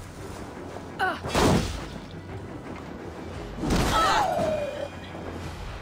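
A blade strikes with a heavy, sudden thud.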